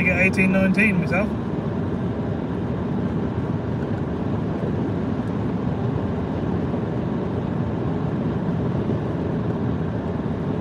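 A car's engine and tyres rumble steadily on a road, heard from inside the car.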